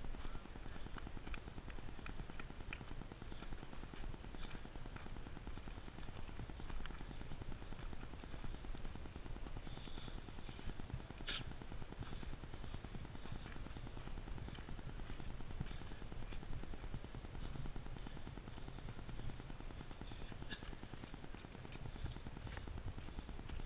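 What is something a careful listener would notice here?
Footsteps crunch on a gravel trail at a running pace.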